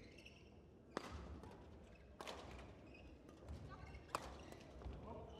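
Badminton rackets hit a shuttlecock with sharp taps.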